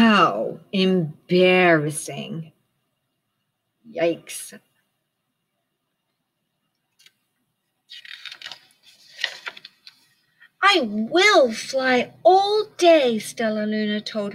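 A middle-aged woman reads aloud close by with expression.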